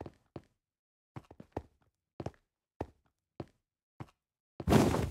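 Footsteps tap on hard ground at a steady pace.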